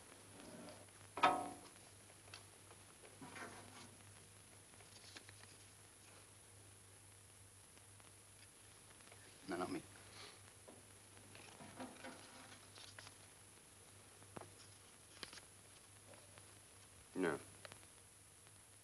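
Young men speak in short bursts.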